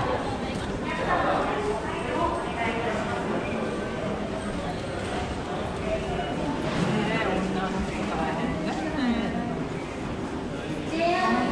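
Footsteps shuffle and tap on a hard floor.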